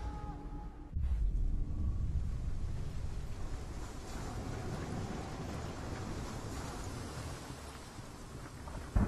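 Wind and rain roar over a stormy sea.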